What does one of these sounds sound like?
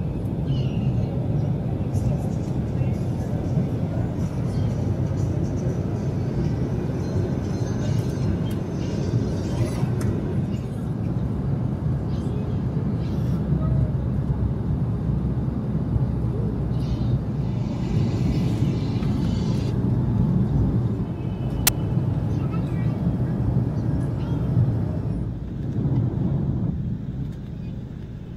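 A steady low engine drone fills an aircraft cabin.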